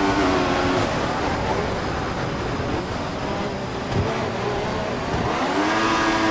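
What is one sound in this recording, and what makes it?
A racing car engine drops in pitch as it slows for a corner.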